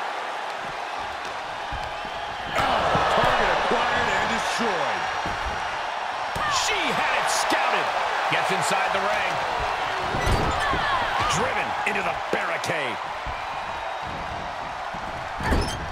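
Wrestlers thud and slam against each other.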